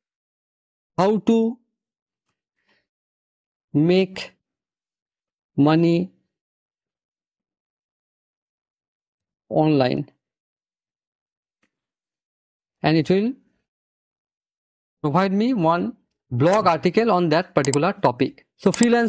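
A man speaks in short bursts into a close microphone, with pauses between phrases.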